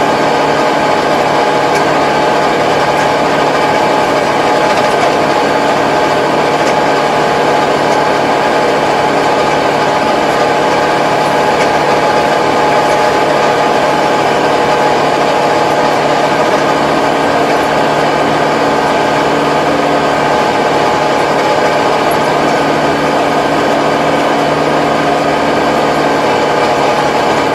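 A tractor engine drones loudly and steadily close by.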